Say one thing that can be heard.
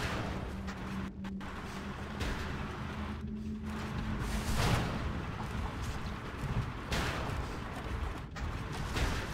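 Explosions burst and rumble.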